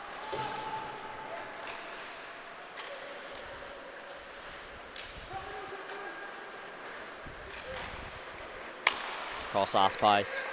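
Skates scrape across ice in a large echoing arena.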